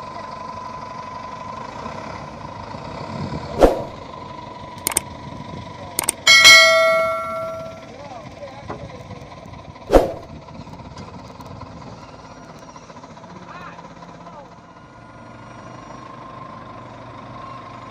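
A wheel loader's diesel engine runs.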